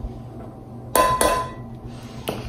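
A metal potato ricer clanks against a metal pot.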